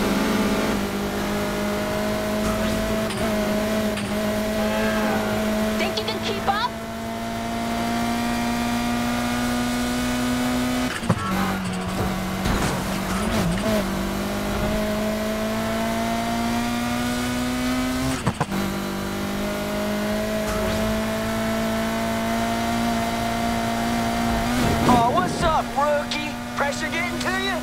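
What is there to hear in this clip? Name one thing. A car engine roars steadily at high revs, its pitch slowly climbing and dropping with each gear shift.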